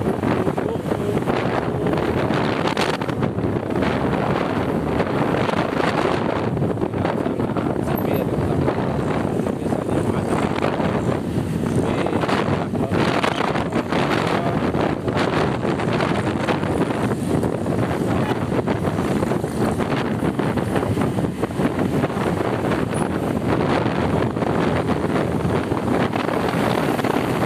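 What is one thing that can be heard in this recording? Motorcycles and cars pass by on a busy street.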